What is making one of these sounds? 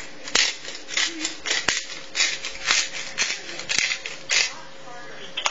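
A shaker rattles as crumbs are shaken out in quick bursts.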